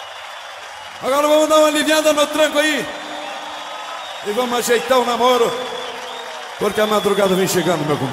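A band plays lively music loudly through loudspeakers.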